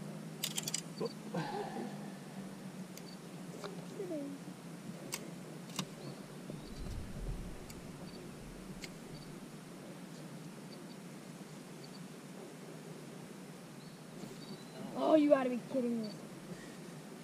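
A man speaks nearby, calm and casual.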